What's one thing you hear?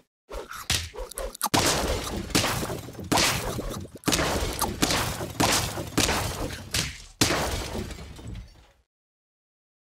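Cartoonish battle sound effects thump and whoosh in quick succession.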